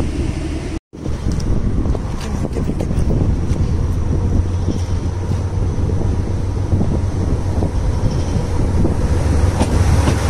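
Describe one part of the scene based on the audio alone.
A train rumbles closer and pulls in alongside, growing louder.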